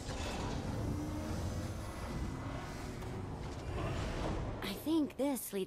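A heavy metal door rumbles as it slides shut.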